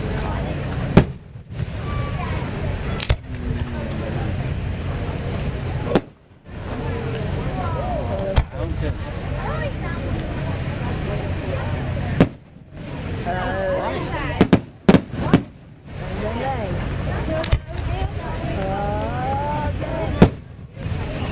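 Fireworks burst with loud sharp bangs.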